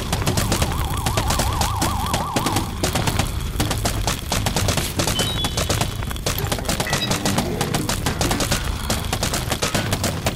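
Game melons thud and splat rapidly onto zombies.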